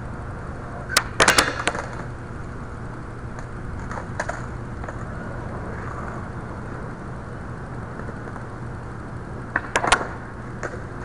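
A skateboard deck clacks sharply against the ground.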